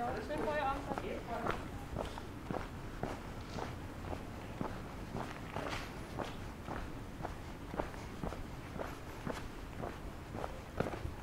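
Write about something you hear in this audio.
Footsteps crunch steadily on paving stones.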